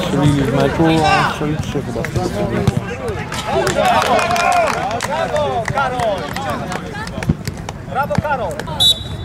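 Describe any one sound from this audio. Several men call out and shout to each other outdoors.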